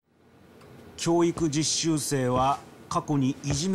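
A young man speaks in a low, serious voice.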